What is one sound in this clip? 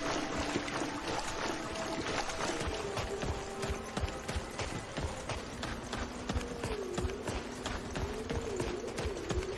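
Footsteps fall on stone paving.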